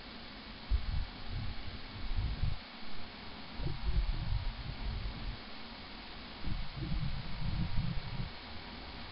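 Twin propeller engines hum steadily at idle.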